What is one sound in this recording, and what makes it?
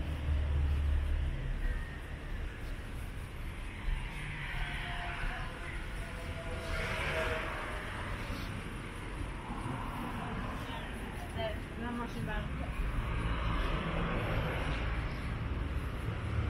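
Traffic hums steadily along an outdoor street.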